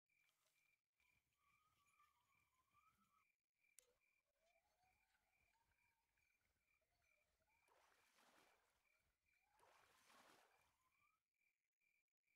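A fishing reel whirs steadily as line is wound in.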